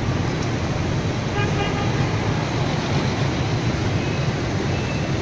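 Dense traffic of motorbikes and cars hums and roars steadily.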